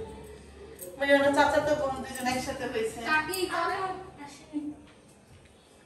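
A middle-aged woman talks calmly nearby.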